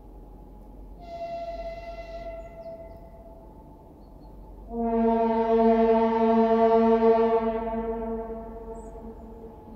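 A train horn blows loudly twice in the distance.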